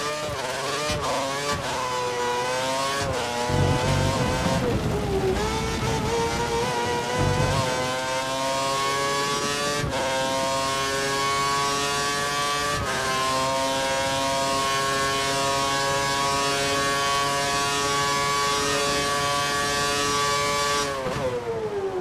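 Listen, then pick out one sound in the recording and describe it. A racing car engine screams at high revs, shifting gears up and down.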